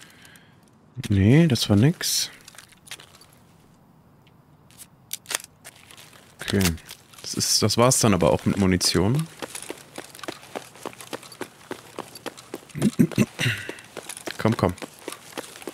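A man talks calmly into a close microphone.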